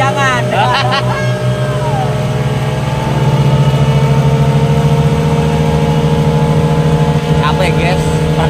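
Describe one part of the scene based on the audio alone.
A boat engine drones steadily and close.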